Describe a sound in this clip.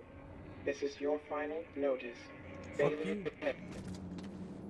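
A man talks casually into a microphone.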